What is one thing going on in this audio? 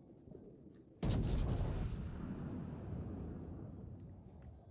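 Heavy naval guns fire with a deep boom that rumbles away.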